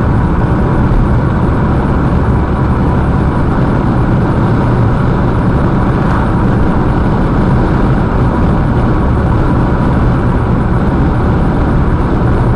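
Tyres roar steadily on an asphalt road.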